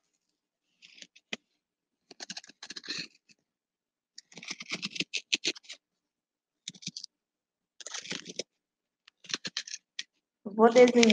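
A young woman reads aloud in short bursts through a microphone.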